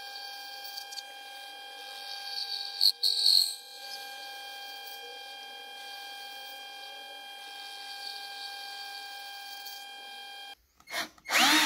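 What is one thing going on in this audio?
A metal lathe hums steadily as its cutting tool shaves metal.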